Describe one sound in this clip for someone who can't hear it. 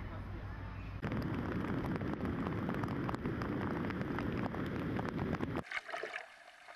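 Big waves crash and roar heavily.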